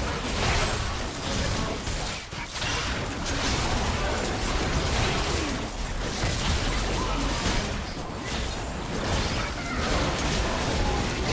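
Magic blasts, hits and explosions crackle and boom in a hectic video game battle.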